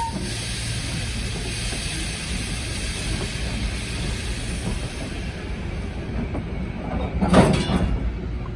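Railway cars roll slowly along the track with a low rumble.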